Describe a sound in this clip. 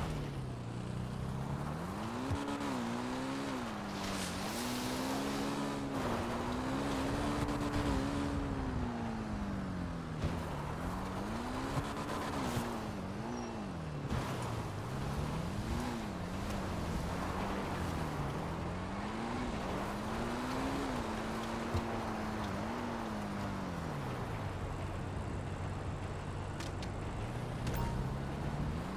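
A motorbike engine revs up and down as it rides along.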